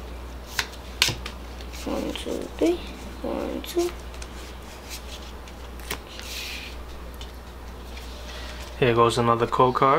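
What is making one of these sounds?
Paper cards rustle and tap as they are handled close by.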